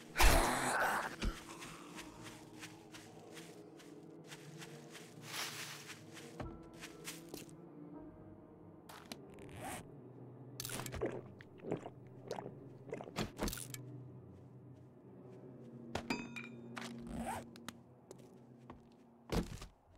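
Footsteps crunch through grass and over stone.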